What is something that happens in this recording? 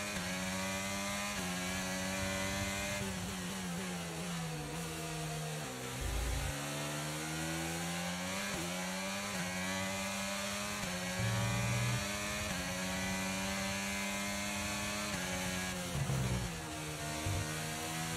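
A racing car engine whines at high revs, dropping in pitch as it shifts gears and climbing again.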